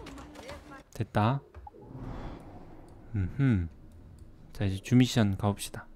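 Short electronic tones chime from a game menu.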